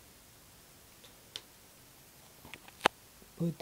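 A small switch clicks a few times.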